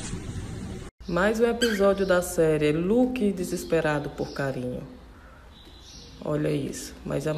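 A cockatiel whistles a warbling tune up close.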